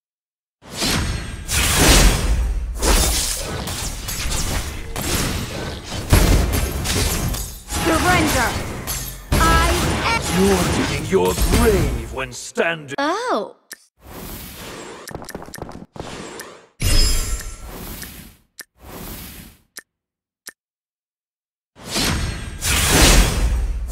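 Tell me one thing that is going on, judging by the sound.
Magic spells blast and whoosh in a fast battle.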